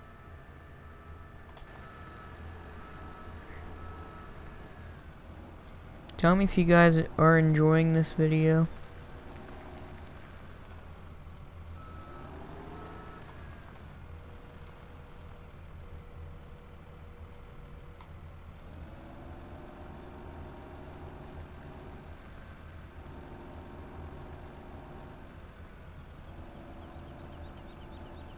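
A diesel engine rumbles steadily.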